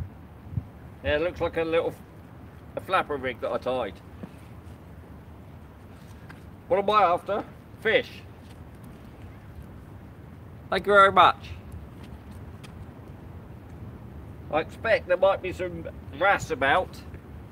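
A middle-aged man speaks calmly in short bursts, close by, outdoors.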